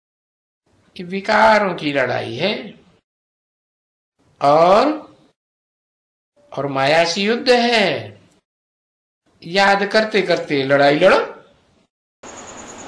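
An elderly man speaks calmly in short phrases close to a microphone.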